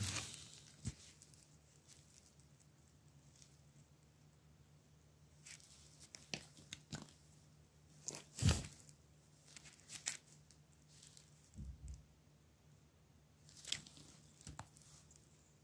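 Fingers handle small electronic parts on a plastic breadboard with faint clicks.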